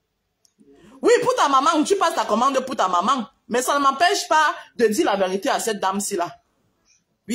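A woman talks close to the microphone with animation.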